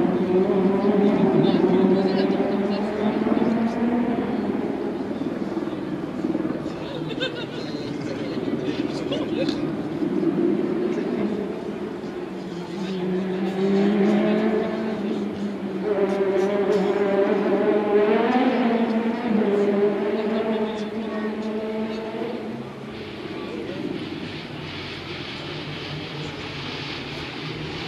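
A crowd of spectators murmurs and chatters outdoors at a distance.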